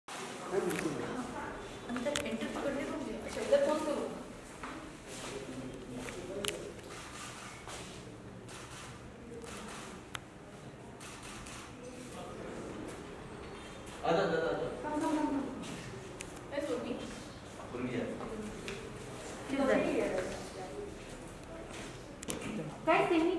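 A young woman talks briefly and cheerfully nearby.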